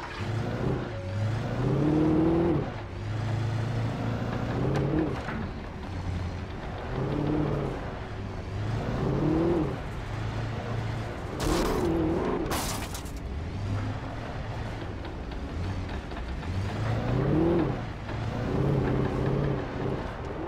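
A truck engine roars, revving up and dropping back again and again.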